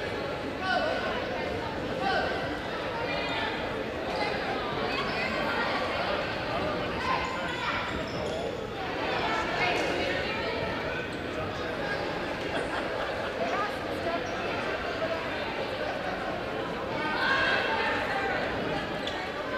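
A crowd of young girls chatter and cheer loudly in a large echoing hall.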